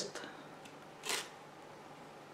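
A plastic object clicks down onto a scale.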